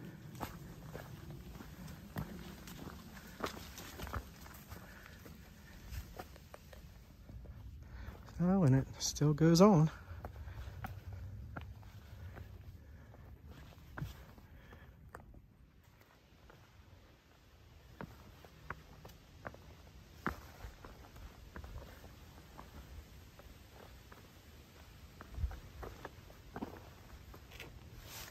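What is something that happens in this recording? Footsteps crunch and scuff on rock and dry leaves.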